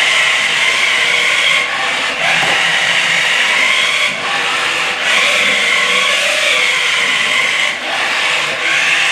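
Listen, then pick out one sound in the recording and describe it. A small toy car's electric motor whines and whirs, pausing briefly now and then.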